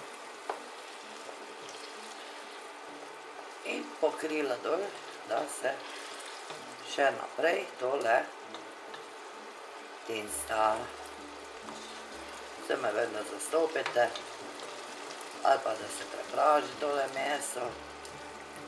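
A wooden spoon stirs and scrapes food in a pan.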